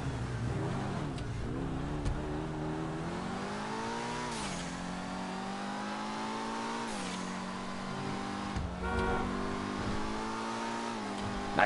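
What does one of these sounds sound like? A car engine revs up and shifts through gears as the car speeds along a road.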